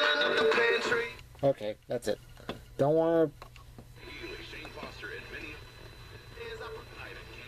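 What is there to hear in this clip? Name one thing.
A radio plays music and voices through a small, tinny speaker.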